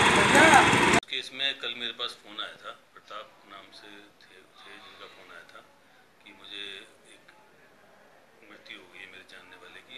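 A middle-aged man speaks calmly into a microphone close by.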